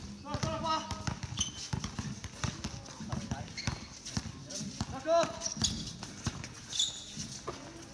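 Sneakers squeak on the court surface.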